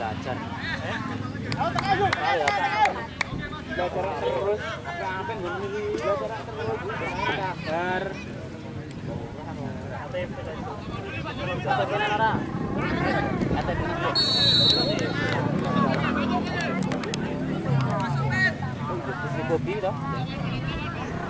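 A crowd of spectators chatters and calls out in the distance outdoors.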